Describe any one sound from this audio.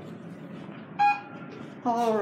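An elevator chime dings once.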